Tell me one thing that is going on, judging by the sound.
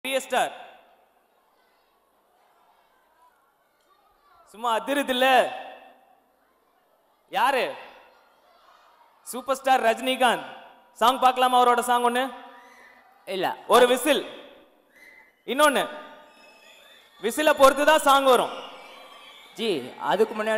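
A young man sings loudly into a microphone in bursts, heard through loudspeakers.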